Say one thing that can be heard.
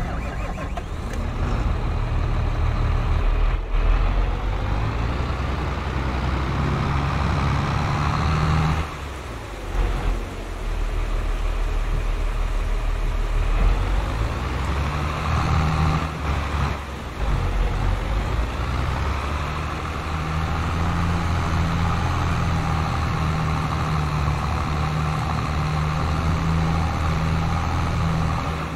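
A tractor engine rumbles steadily, rising and falling as it speeds up and slows.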